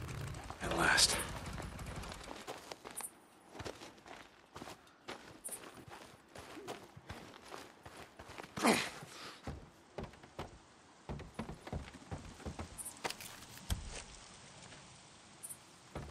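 Footsteps crunch through dry grass and then thud on wooden boards.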